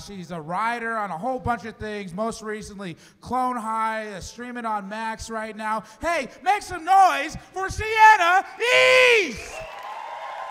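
A man speaks animatedly into a microphone, heard through a loudspeaker.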